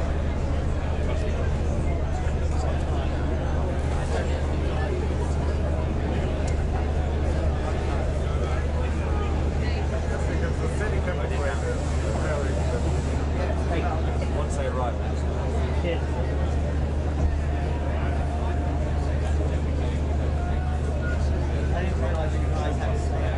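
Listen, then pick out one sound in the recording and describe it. A crowd of men and women chatter all around, close by.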